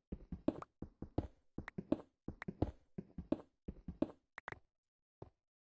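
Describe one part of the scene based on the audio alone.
A pickaxe chips rapidly at stone.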